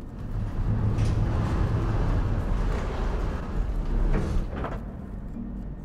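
A heavy mechanical lift rumbles low as it moves down.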